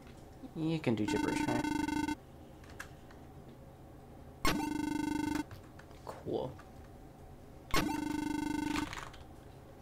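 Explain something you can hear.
A game's dialogue text chirps in short, steady electronic beeps.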